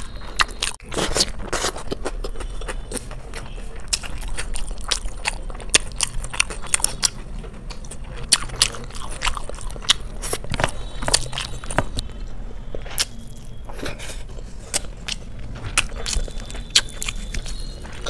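A woman chews food noisily close to a microphone.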